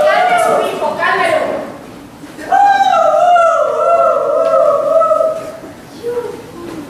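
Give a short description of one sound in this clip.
A woman sings loudly in a large echoing hall.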